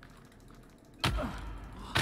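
An axe strikes a wooden door with a heavy thud.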